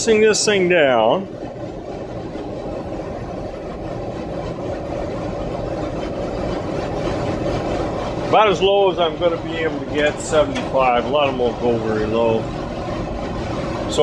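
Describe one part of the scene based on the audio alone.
A compressor hums steadily nearby.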